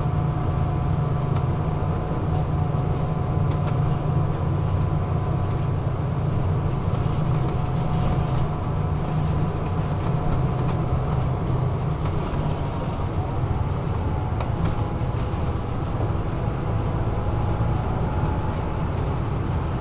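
A vehicle's engine hums steadily from inside as it drives along a road.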